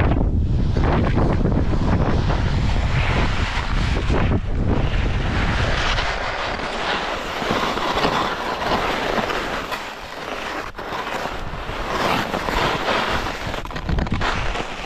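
Skis hiss and scrape over snow.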